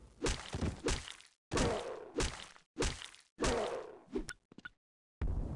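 An axe thuds into flesh.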